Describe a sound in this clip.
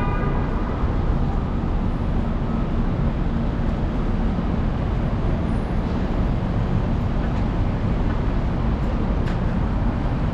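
City traffic rumbles steadily nearby outdoors.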